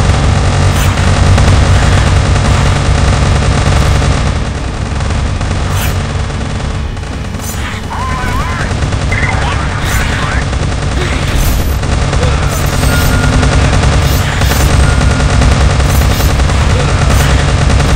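Small explosions pop and boom.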